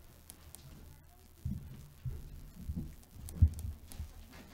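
Footsteps thud on a stage floor.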